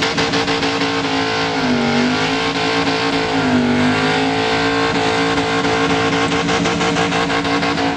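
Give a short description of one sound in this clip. Car tyres screech as they spin on the track.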